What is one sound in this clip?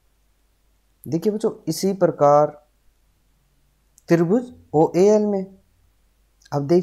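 A young man speaks calmly and clearly into a close microphone, in short phrases.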